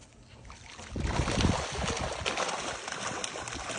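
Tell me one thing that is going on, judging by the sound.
A dog plunges into water with a loud splash.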